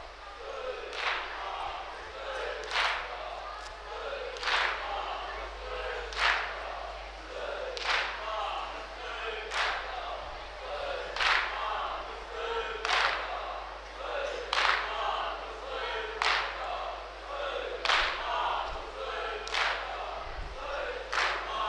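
A crowd of men beat their chests in a slow, steady rhythm.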